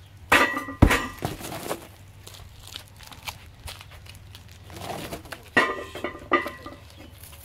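A heavy stone ball clanks and thuds against a metal frame.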